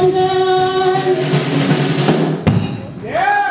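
A live band plays loud electric guitar and drums.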